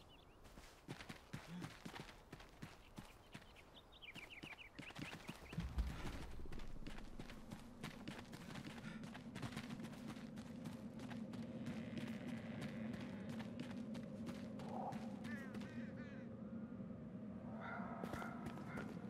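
Footsteps run quickly over dirt and stone.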